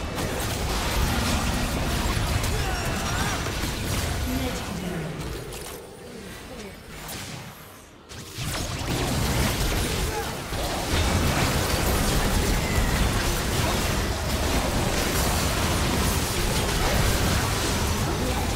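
Spell blasts and hits crackle and boom in a fast fight.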